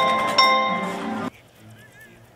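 A jingle plays with bright chimes.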